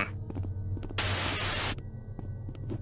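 A radio hisses with static and then cuts off.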